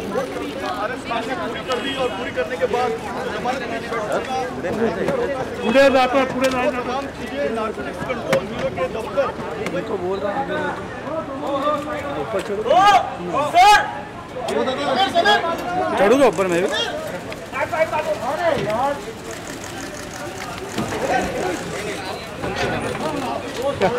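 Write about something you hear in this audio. A crowd of men shouts and talks over one another close by, outdoors.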